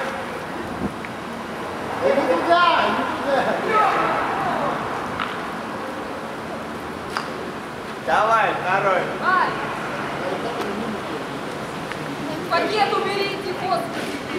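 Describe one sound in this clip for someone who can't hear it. Footsteps pass close by on pavement.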